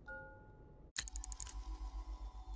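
A game menu opens with a short electronic chime.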